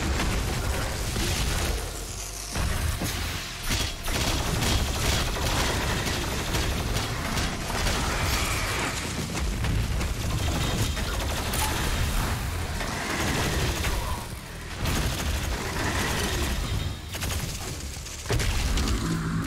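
Loud explosions boom.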